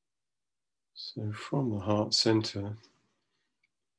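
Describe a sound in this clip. A man speaks briefly and softly through an online call.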